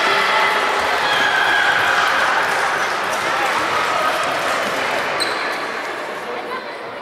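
Children shout and cheer loudly in a large echoing hall.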